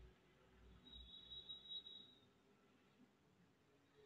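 A glass lid clinks onto a pan.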